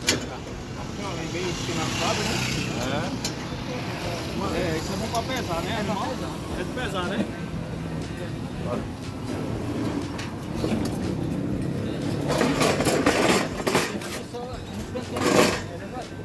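Men talk nearby with animation.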